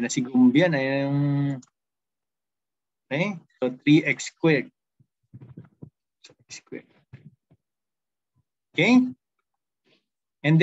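A man explains calmly, heard through an online call.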